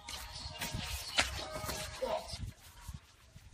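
Shoes scuff and shuffle on concrete close by.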